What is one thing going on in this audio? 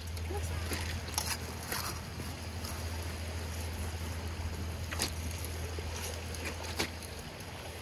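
A shovel scrapes into wet gravel.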